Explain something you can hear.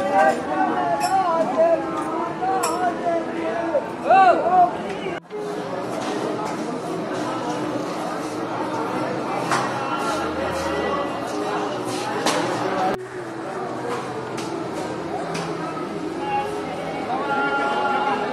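A crowd of men and women chatters nearby outdoors.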